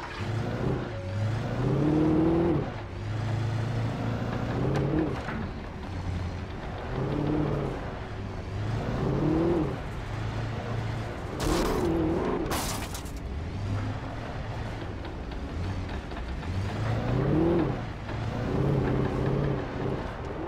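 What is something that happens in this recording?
Tyres rumble over rough ground.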